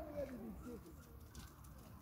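A monkey scampers across loose gravel.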